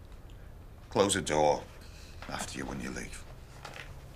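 A middle-aged man speaks quietly close by.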